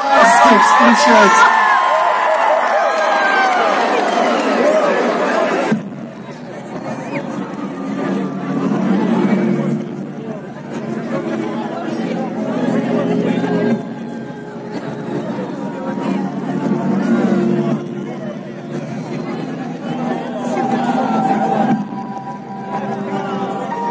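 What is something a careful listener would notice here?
Loud live music plays through large speakers outdoors.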